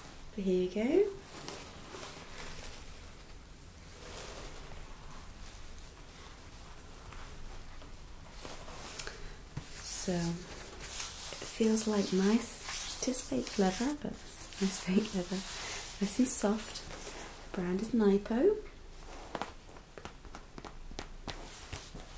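Fabric rustles and crinkles as it is handled.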